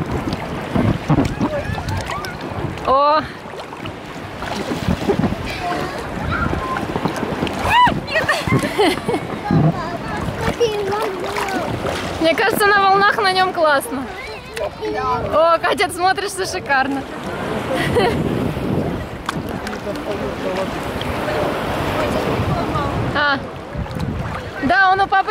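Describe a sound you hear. Water splashes and sloshes close by.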